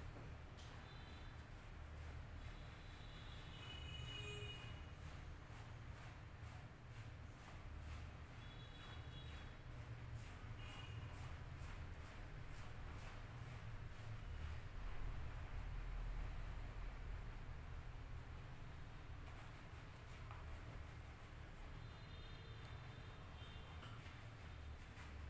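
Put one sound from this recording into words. Fingers rub and squish through soapy, lathered hair, close by.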